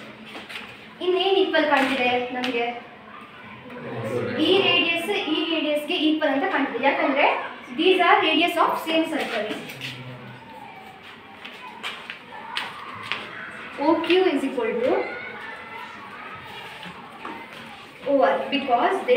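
A young girl speaks clearly and steadily, explaining, in a room with some echo.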